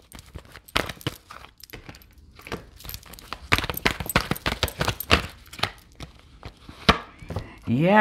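Playing cards riffle and slap together as they are shuffled.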